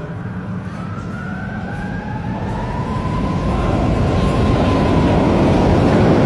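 A tram rolls into an echoing hall with a rumble that grows louder.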